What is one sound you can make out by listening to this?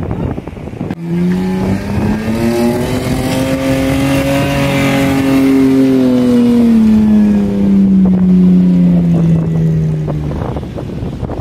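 A truck engine revs hard, rising and then falling in pitch.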